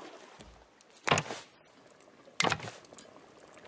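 Wooden planks knock into place with hollow thuds.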